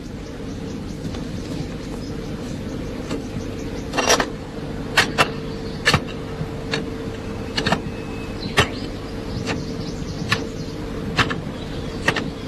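A hoe strikes stony ground in slow, uneven blows.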